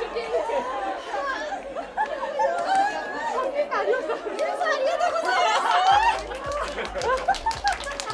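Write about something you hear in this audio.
A woman laughs loudly with delight.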